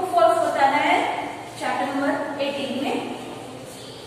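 A young woman speaks clearly, as if teaching.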